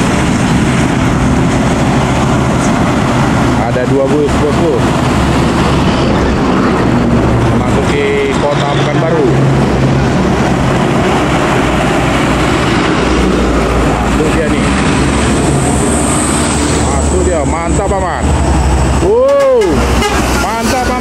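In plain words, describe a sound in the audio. Heavy trucks rumble past on a road with loud diesel engines.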